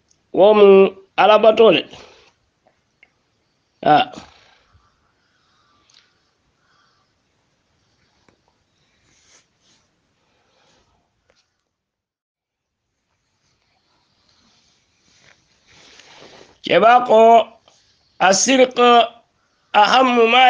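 An elderly man speaks slowly and calmly, with long pauses, close to the microphone.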